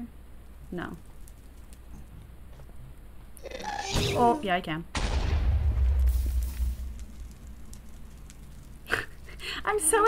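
Fire crackles softly.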